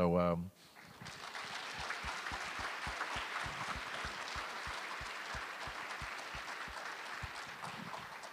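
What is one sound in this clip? An audience applauds and claps in rhythm.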